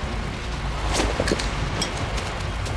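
A lighter clicks and flicks open.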